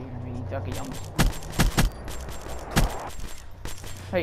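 Gunshots fire in short rapid bursts.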